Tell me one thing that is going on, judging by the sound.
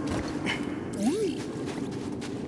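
A small robot chirps with a rising, warbling beep.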